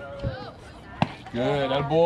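A ball smacks sharply into a catcher's glove.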